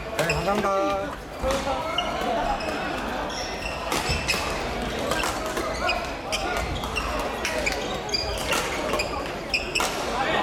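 Shuttlecocks are struck with sharp pops by rackets.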